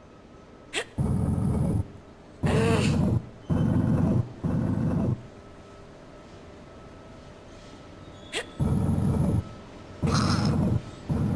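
A heavy stone block scrapes and grinds as it is pushed along the floor.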